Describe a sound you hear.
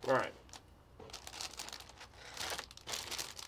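Plastic wrapping crinkles and tears as packages are opened.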